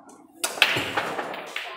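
A cue strikes a ball with a sharp clack.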